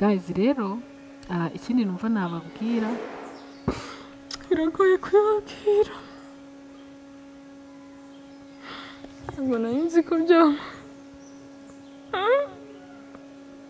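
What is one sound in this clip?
A young woman speaks softly and with emotion into a headset microphone.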